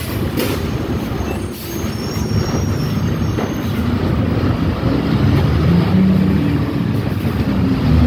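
Tyres hiss on wet pavement.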